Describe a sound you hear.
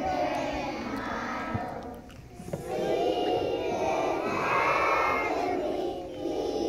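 A large choir of young children sings together in a big echoing hall.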